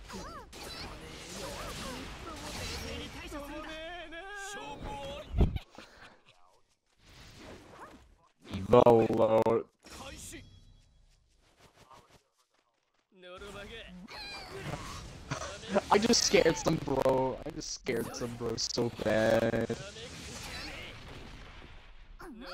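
Sword slashes and heavy blows land in quick bursts.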